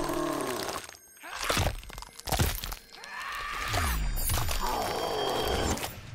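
Blades slice and squelch into flesh.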